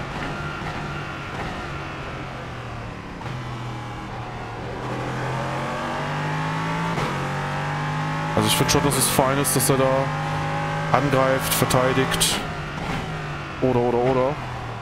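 A racing car engine drones and shifts pitch as it speeds up and slows down.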